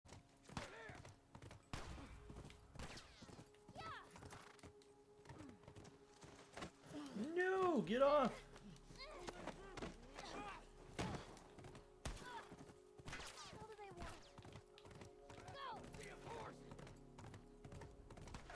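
A horse's hooves clop steadily on packed snow.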